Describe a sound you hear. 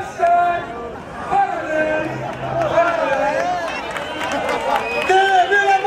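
A crowd of people cheers and shouts.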